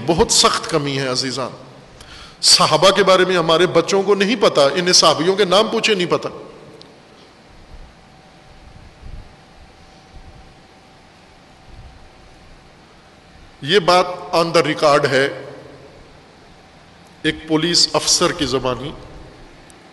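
An elderly man speaks with emphasis into a microphone, pausing often.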